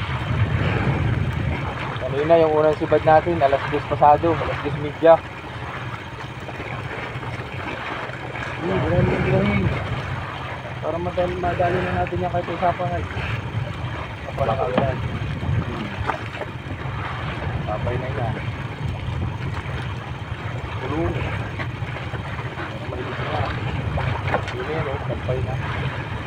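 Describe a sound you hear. A boat engine hums steadily throughout.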